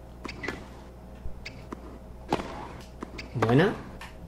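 A tennis ball is struck with a sharp pop.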